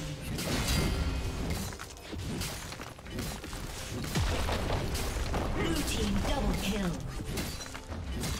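Game spells and weapon hits crackle and clash in quick bursts.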